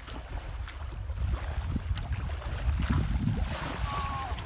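A fish splashes in shallow water.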